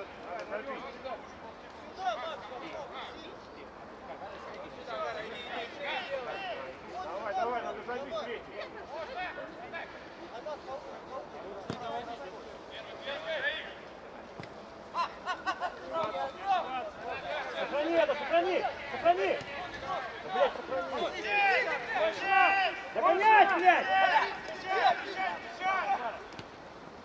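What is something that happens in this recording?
Men shout to each other across an open pitch outdoors.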